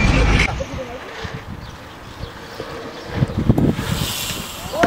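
Skateboard wheels roll and clatter on concrete outdoors.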